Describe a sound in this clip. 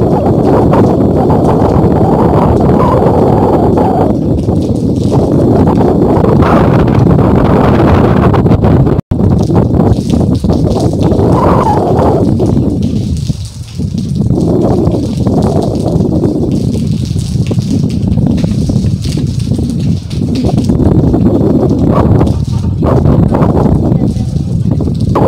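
Rain patters steadily on a metal roof.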